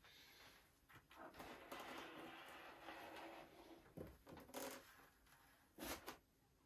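A gloved hand rubs across balsa wood.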